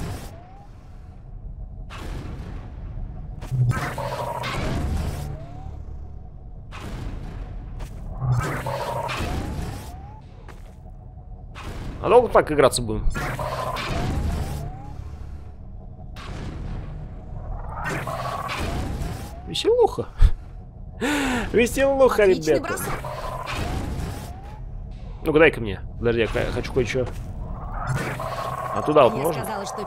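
A sci-fi gun hums and launches objects with loud electric blasts again and again.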